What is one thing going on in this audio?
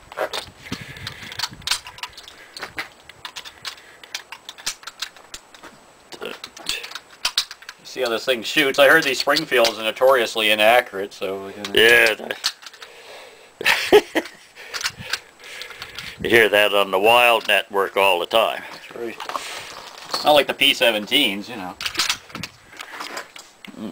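Metal clicks and clacks as a rifle bolt is worked.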